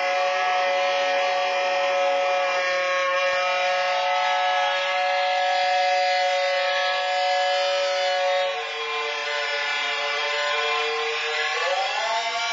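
A saxophone plays long, held notes.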